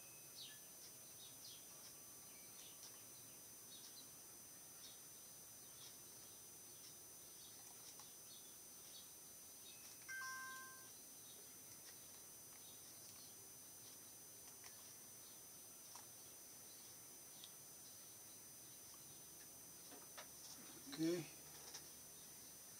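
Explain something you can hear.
A computer mouse clicks softly, now and then.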